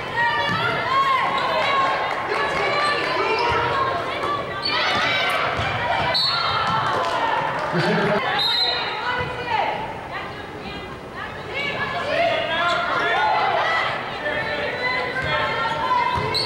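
Basketball shoes squeak on a hardwood court in a large echoing gym.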